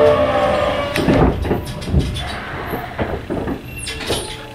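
Train wheels clunk and thump over the rails.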